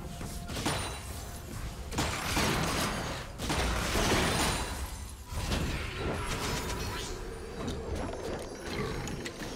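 Video game hits clash and thud.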